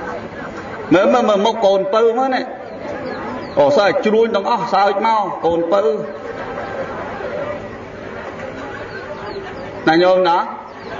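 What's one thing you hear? A man speaks close to a microphone in short bursts.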